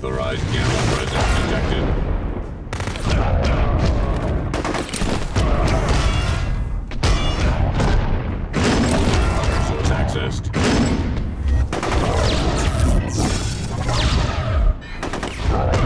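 Heavy blows thud and crash during a fight.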